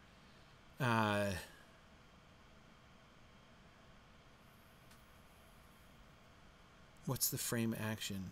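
A man speaks over an online call, close to the microphone, with pauses.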